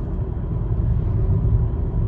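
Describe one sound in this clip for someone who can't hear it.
An oncoming car passes by with a brief whoosh.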